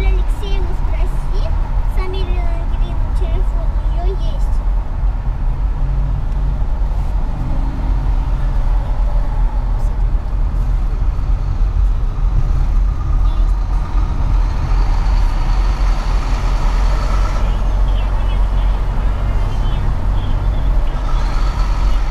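A car's engine hums and its tyres roar steadily on a highway.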